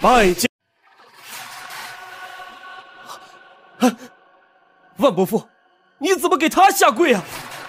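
A man speaks with emotion, close by.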